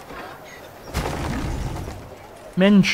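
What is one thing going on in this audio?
A building collapses with a rumbling crash.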